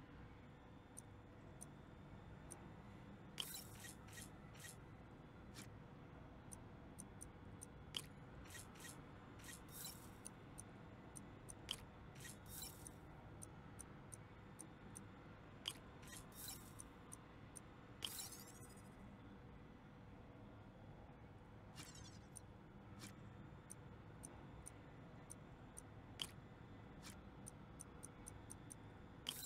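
Game menu clicks and soft electronic blips sound as puzzle pieces are placed.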